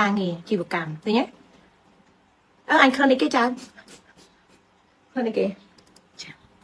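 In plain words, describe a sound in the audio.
A woman speaks with animation close to a microphone, in short bursts with pauses.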